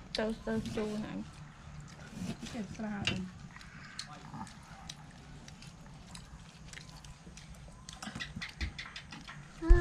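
Hands toss and squish a wet salad.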